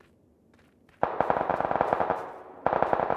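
Footsteps crunch quickly across snow.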